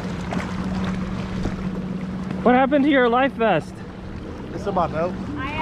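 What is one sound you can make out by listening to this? A kayak paddle splashes in water.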